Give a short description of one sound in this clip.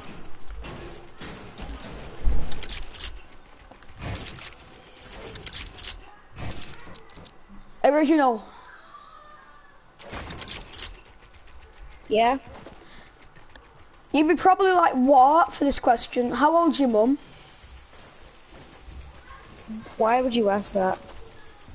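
Wooden panels clack and thud as they snap into place in a video game.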